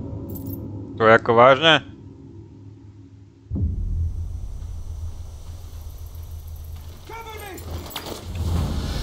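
A young man exclaims loudly into a nearby microphone.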